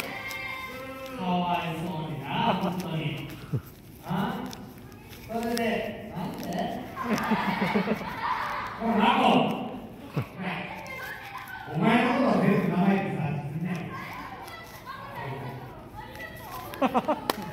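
A young man addresses a crowd with animation through a handheld microphone and loudspeakers in a large hall.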